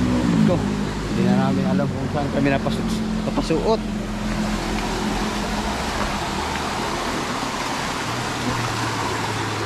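A stream of water rushes and splashes steadily.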